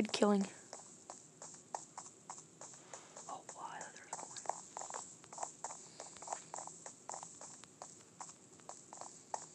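Footsteps tap quickly on a wooden floor.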